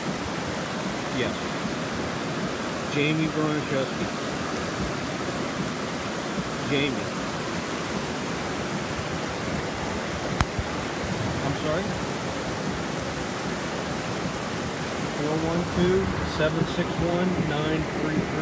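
Floodwater rushes and churns loudly.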